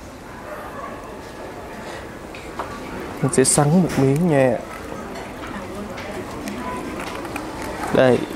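A spoon clinks against a small dish.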